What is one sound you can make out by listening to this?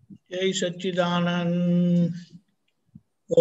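An elderly man chants in long, drawn-out tones over an online call.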